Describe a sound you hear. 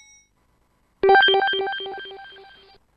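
A computer quiz game plays a bright chiming jingle for a correct answer.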